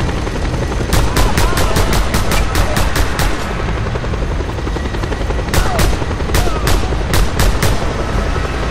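Rapid gunfire crackles in quick bursts.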